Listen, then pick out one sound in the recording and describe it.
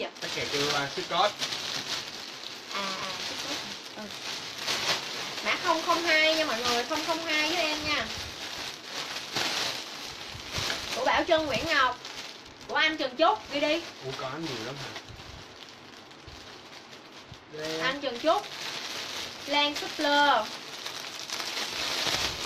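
A young woman talks animatedly and close by.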